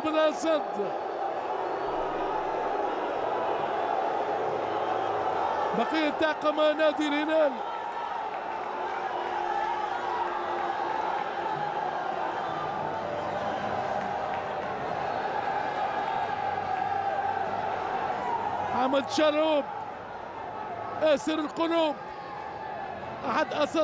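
A large stadium crowd murmurs and cheers steadily in the open air.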